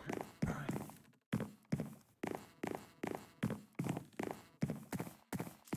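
Footsteps thud steadily on wooden planks.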